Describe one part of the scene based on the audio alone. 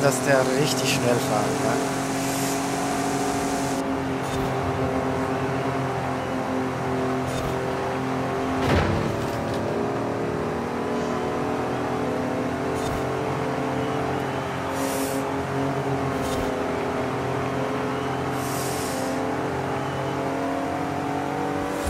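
A truck engine roars steadily at high speed.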